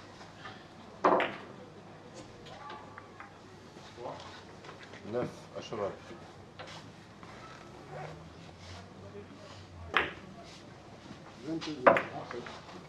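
Billiard balls click sharply against each other in a room with a slight echo.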